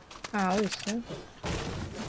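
A pickaxe thuds against wood.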